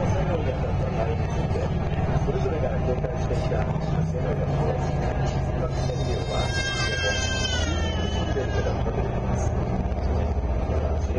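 A boat engine rumbles low and steadily.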